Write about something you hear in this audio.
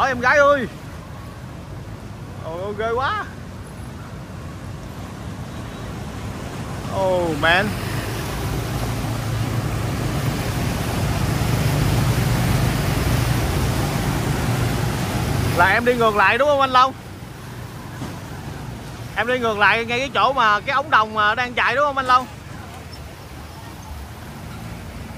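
Floodwater rushes and swirls steadily.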